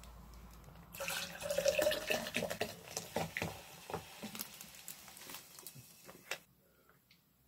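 Fizzy drink pours and fizzes into a glass.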